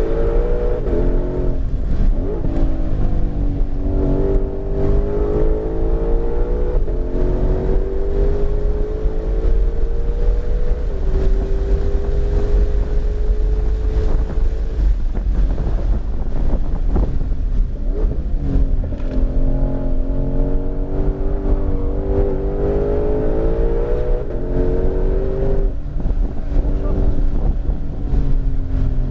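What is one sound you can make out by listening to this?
A car engine roars loudly, climbing in pitch and dropping with each gear change.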